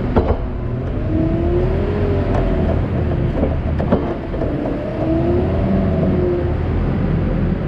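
Hydraulics whine, rising and falling in pitch.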